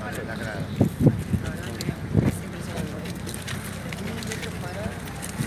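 A crowd of men and women murmur nearby.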